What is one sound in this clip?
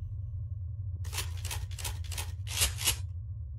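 Short game sound effects chime in quick succession as items are picked up.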